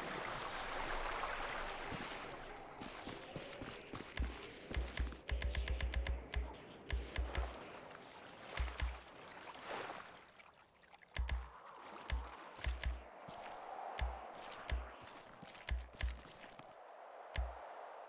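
Waves wash and roll onto a shore.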